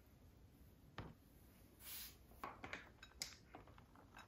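Food toppings drop softly onto a salad with light rustles.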